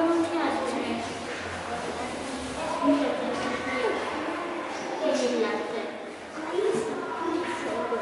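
A young boy speaks close by.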